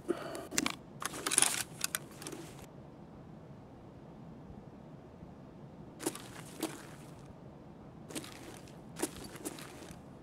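A rifle clicks as it is raised and readied.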